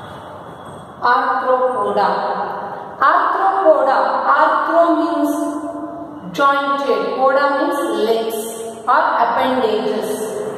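A young woman speaks clearly and with animation, close by.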